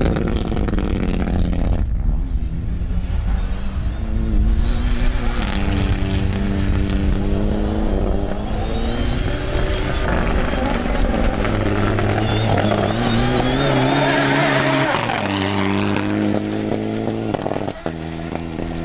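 Gravel and dirt spray and crunch under spinning tyres.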